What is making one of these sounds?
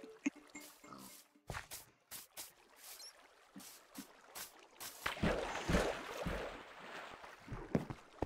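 Footsteps tread on grass and wooden boards.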